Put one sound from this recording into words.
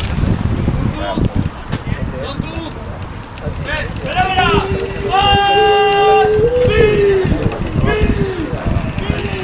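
Men shout to each other from a distance across an open field.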